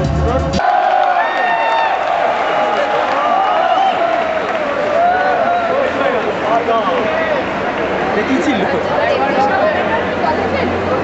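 A crowd of people chatter and call out loudly outdoors.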